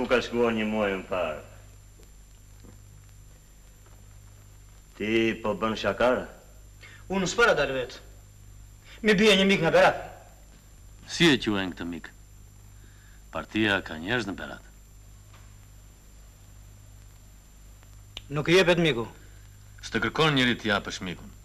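Several men talk in turns, calmly and close by.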